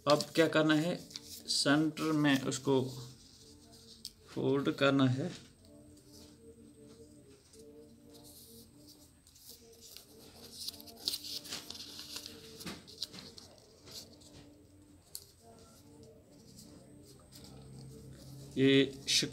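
Paper rustles and crinkles softly as it is folded.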